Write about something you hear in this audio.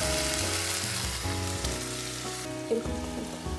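Meat sizzles in a hot frying pan.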